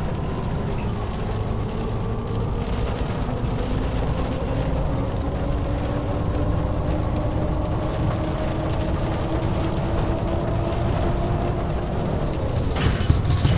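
A bus engine whines and rises in pitch as it speeds up.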